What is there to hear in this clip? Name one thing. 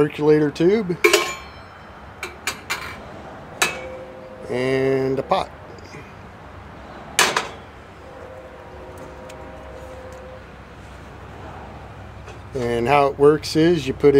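Metal parts of a coffee pot clink together.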